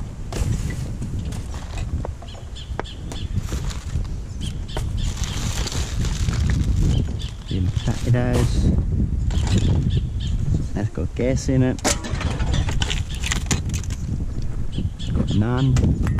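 Plastic wrappers and bags rustle and crinkle as gloved hands dig through rubbish.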